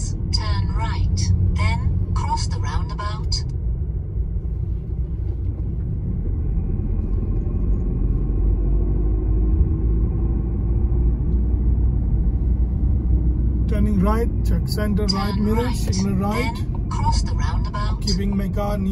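A car engine hums low and steady from inside the car as it drives along a road.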